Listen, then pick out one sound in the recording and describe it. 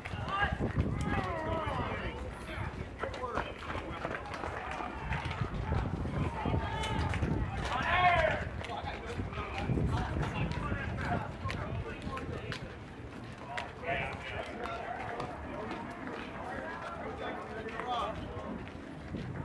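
Young players call out to each other across an open field, heard from a distance.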